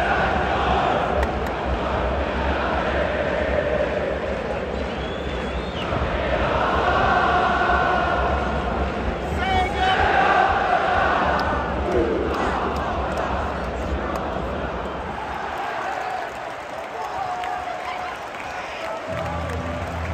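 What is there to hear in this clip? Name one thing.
A large stadium crowd sings and chants loudly all around.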